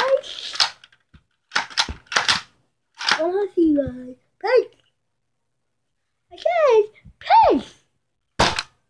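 A young boy talks and exclaims playfully close by.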